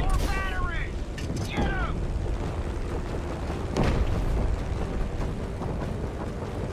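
Explosions boom in the distance.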